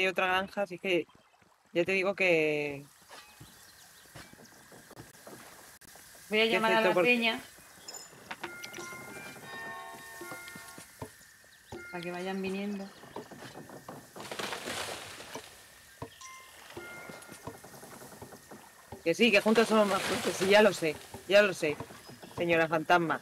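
A young woman talks with animation over a microphone.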